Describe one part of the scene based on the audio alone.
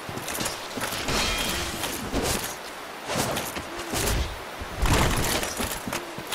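A sword whooshes through the air and strikes a creature.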